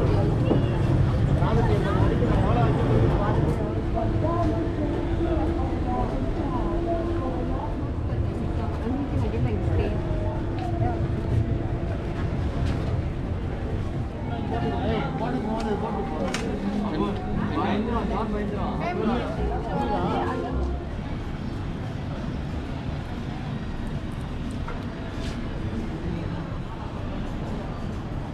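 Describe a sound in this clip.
A low hum of street noise goes on throughout, outdoors.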